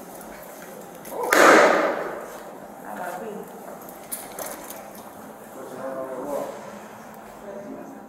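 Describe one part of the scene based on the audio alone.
A door opens and closes with a clunk.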